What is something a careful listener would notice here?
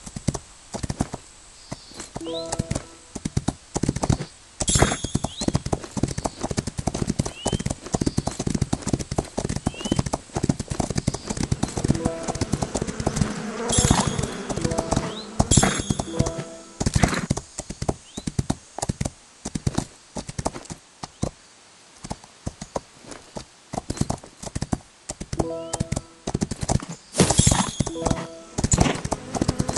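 Horse hooves gallop steadily on a dirt track.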